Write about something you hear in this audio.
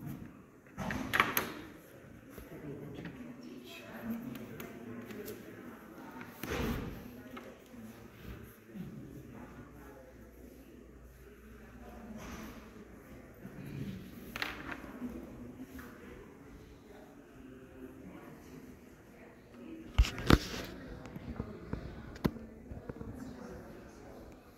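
Metal rulers tap and slide on a hard board.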